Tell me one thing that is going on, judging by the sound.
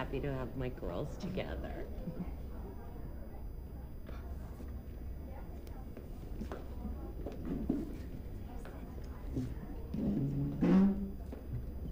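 A young woman talks and laughs cheerfully.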